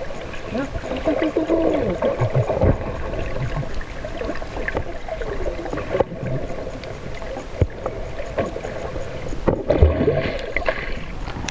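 Dolphins click rapidly underwater.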